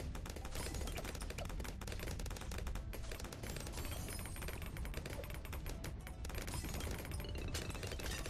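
Video game effects pop and crackle rapidly.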